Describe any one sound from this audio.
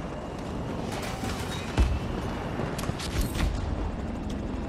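Rockets whoosh as they fire.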